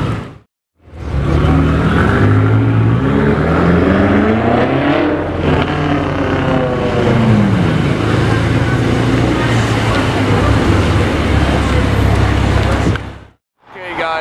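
A sports car engine rumbles deeply as the car rolls slowly past.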